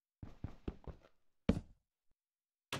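A block crumbles as it is broken.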